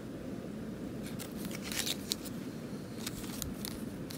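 Cardboard tags rustle and tap softly as they are handled.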